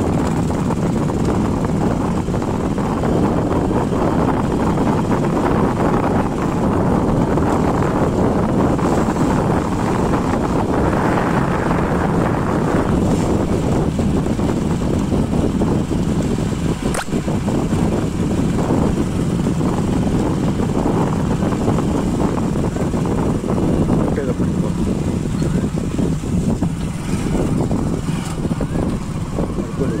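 Wind blows loudly into the microphone outdoors.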